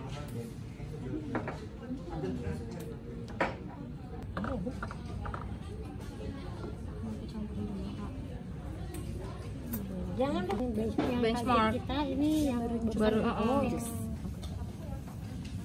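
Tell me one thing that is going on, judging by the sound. Several women talk quietly nearby.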